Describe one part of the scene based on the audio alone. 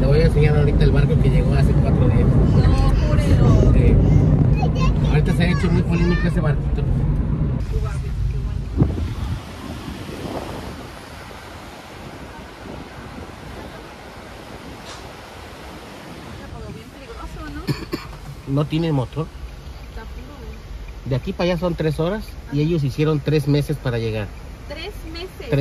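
A car's engine and tyres hum steadily on the road.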